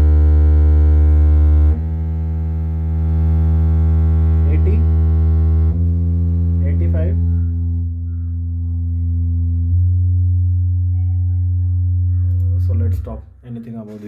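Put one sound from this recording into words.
A loudspeaker plays a loud, deep humming tone that drops in pitch in steps.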